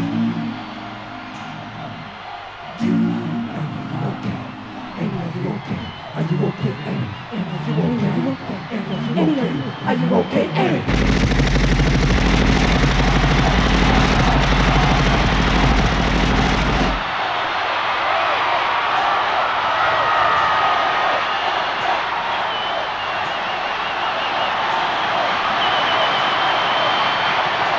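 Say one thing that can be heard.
Loud pop music plays over a concert sound system.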